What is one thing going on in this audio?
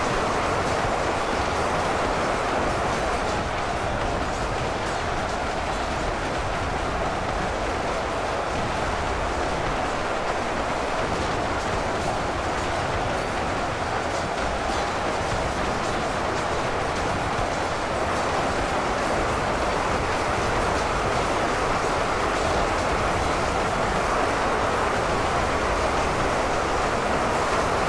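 A huge battle roars steadily, with a dense din of clashing weapons and crowd noise.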